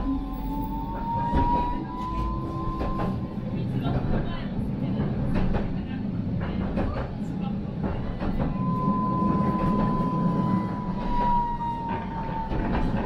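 A tram's electric motor whines as it runs.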